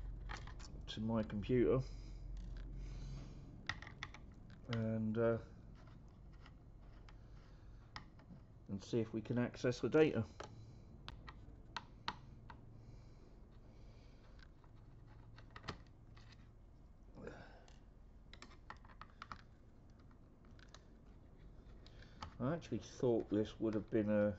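Small metal parts click and tap as hands work inside a computer case.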